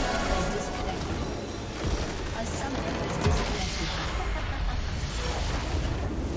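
Game spell effects crackle and whoosh.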